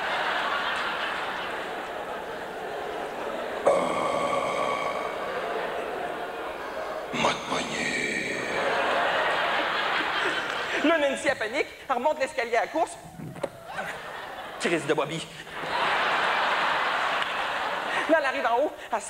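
An audience laughs and applauds loudly.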